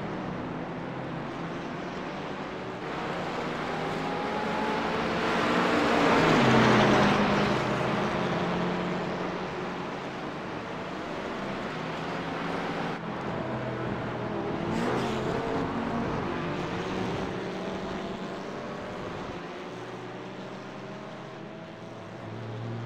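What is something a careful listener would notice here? Racing car engines roar and whine as the cars speed along a track.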